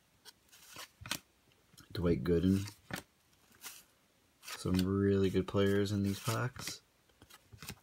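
Cards are shuffled and slid against each other.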